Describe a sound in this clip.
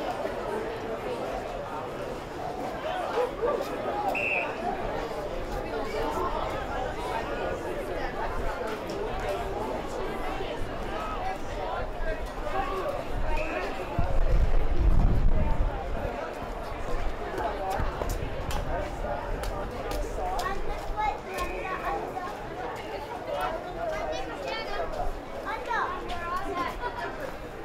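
A crowd of spectators shouts and cheers from the sidelines.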